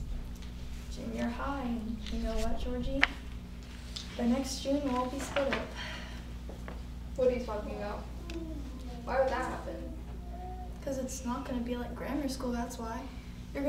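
A teenage girl speaks softly, close to a microphone.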